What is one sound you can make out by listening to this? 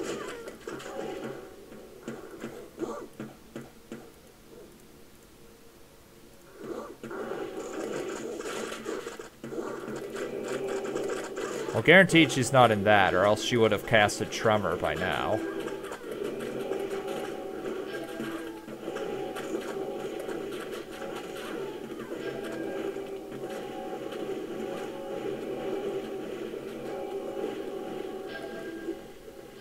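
Spells crackle and blast in a fight.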